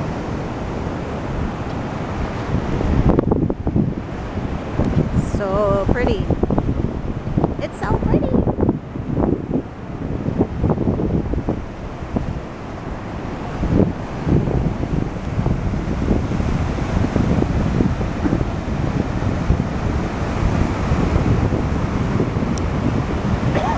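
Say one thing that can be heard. Ocean waves crash and wash over rocks.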